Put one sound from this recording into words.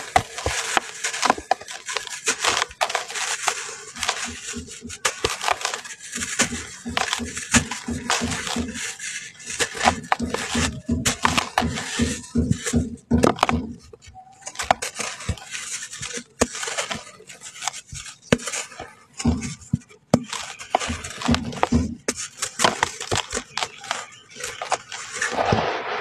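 Dry dirt crumbles and pours from hands in soft, close rustling trickles.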